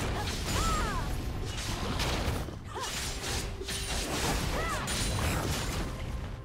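Game spells and attacks crackle, whoosh and clash in a hectic battle.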